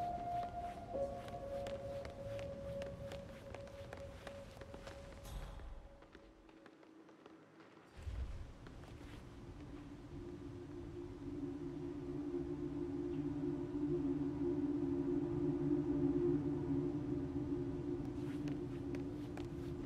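Footsteps patter on a hard floor.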